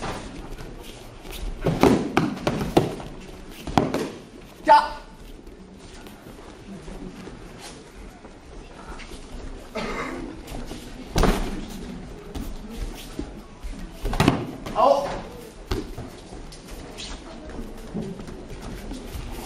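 Feet thud and shuffle on a padded mat.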